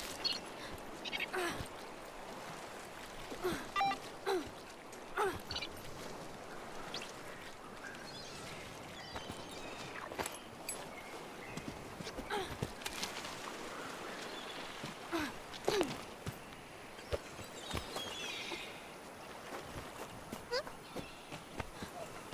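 Soft footsteps patter along a rocky path.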